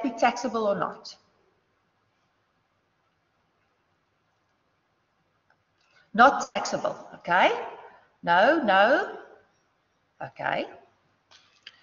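A young woman lectures calmly through a microphone, pausing between phrases.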